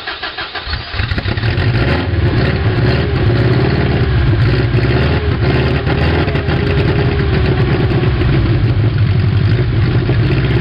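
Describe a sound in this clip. A flat-four car engine with no exhaust roars as it runs.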